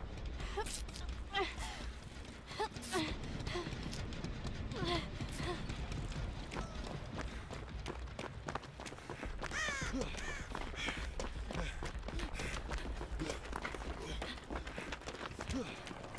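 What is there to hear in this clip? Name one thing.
Footsteps rustle through tall grass at a run.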